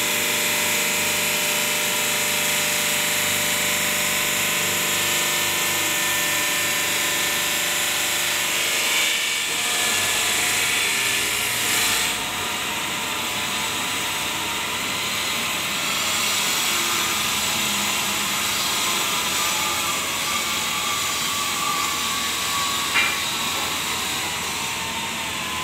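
A stone-cutting saw whines and grinds steadily, echoing under a metal roof.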